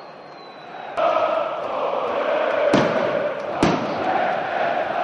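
A large stadium crowd roars and chants loudly.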